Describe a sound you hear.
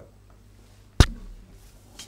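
A cue sharply strikes a billiard ball.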